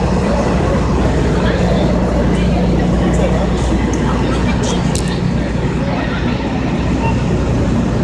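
Wind gusts outdoors and buffets the microphone.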